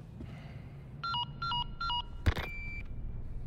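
A radio beeps several times.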